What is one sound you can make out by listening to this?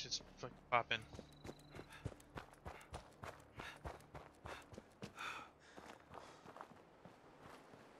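Footsteps crunch on gravel at a steady pace.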